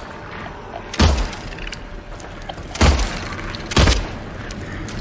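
A pistol fires a few loud, sharp shots in an echoing space.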